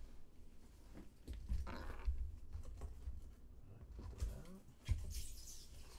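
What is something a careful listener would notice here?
Cardboard rustles as a box flap is opened.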